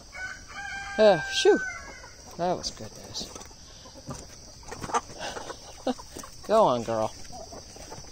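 A rooster squawks and clucks nearby.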